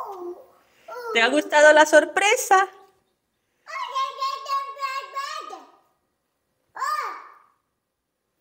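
A young child talks excitedly close by.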